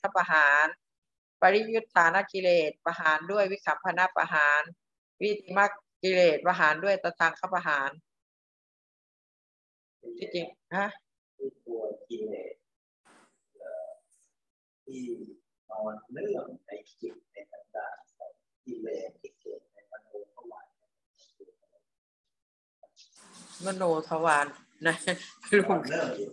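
A young woman speaks calmly through an online call microphone.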